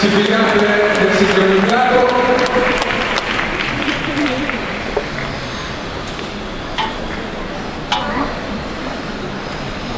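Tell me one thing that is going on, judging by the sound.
Ice skates glide and scrape across the ice.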